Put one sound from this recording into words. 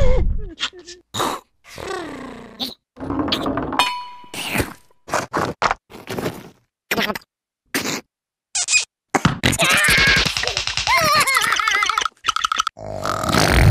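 A cartoon creature squeals and babbles in a high, sped-up voice.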